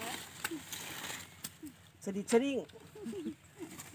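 A woman talks nearby, outdoors.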